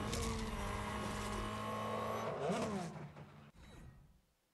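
A race car engine roars at high revs.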